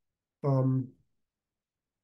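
A man speaks a brief word through a microphone.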